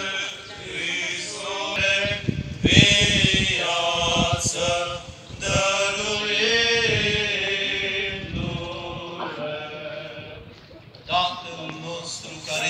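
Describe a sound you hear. A crowd of men and women sings together outdoors.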